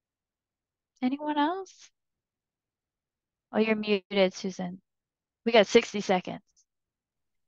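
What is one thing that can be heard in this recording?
An older woman speaks calmly over an online call, in short phrases with pauses.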